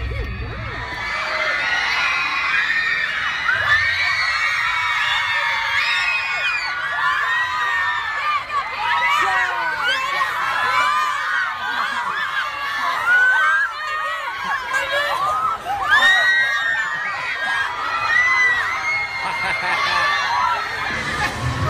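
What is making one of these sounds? A crowd of young girls screams and shrieks excitedly close by.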